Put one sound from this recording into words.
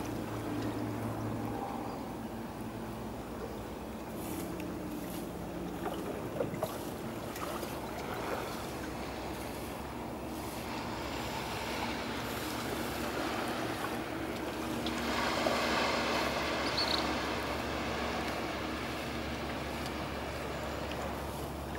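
Gentle waves lap softly at the shore.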